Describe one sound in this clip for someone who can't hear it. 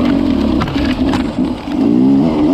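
Branches scrape against a dirt bike.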